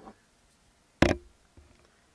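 A small metal tool knocks sharply against a hard surface.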